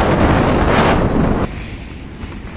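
A motorcycle engine rumbles low.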